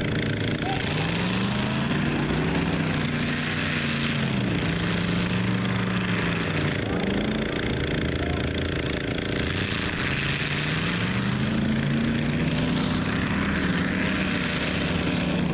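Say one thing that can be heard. Mud splashes and sprays from spinning tyres.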